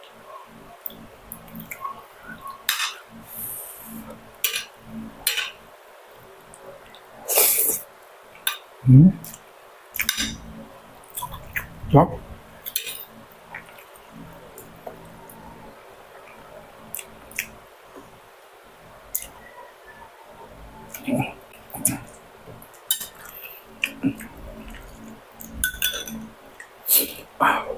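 Cutlery clinks and scrapes against a plate.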